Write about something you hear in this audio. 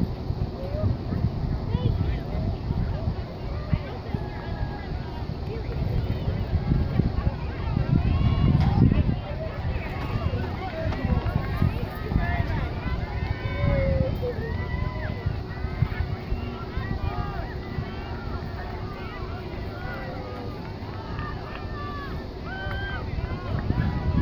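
A crowd of children and adults cheers and shouts from a distance.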